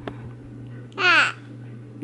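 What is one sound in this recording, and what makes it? A baby squeals brightly.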